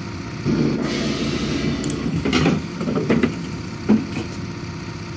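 Pneumatic bus doors hiss and swing open.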